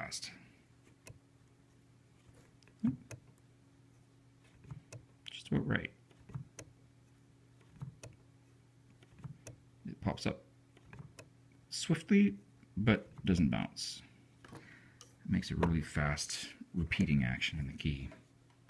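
Piano hammers strike the strings, sounding notes up close.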